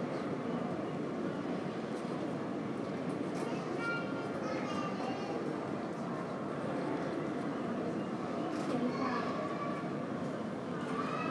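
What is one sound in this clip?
Distant voices and footsteps murmur in a large echoing hall.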